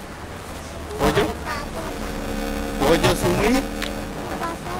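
A small boy speaks in a high voice.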